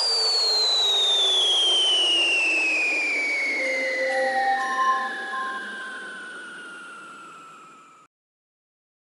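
A long electronic tone slowly falls in pitch and fades.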